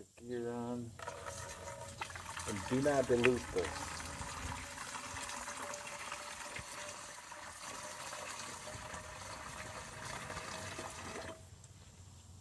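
Liquid pours and splashes steadily into a container.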